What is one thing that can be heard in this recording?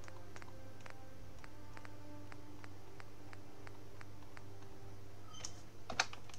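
Short menu clicks tick one after another in a steady rhythm.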